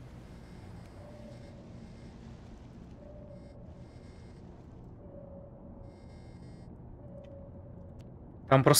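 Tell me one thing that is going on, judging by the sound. A sonar gives soft pings at intervals.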